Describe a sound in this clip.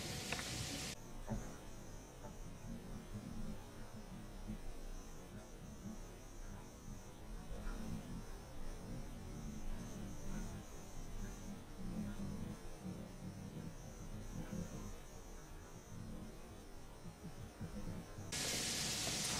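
Water murmurs faintly and dully, heard from underwater.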